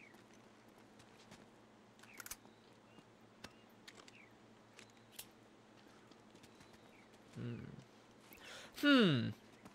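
Footsteps crunch over leaves and undergrowth.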